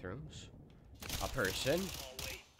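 Rapid gunshots fire at close range.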